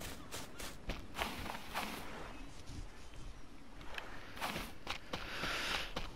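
Waves wash gently onto a beach.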